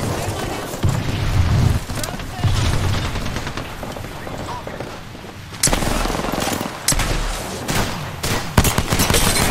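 Smoke grenades burst and hiss loudly.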